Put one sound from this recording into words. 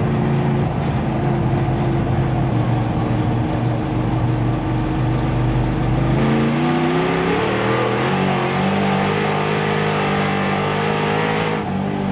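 A race car engine roars loudly up close, its pitch rising and falling with the throttle.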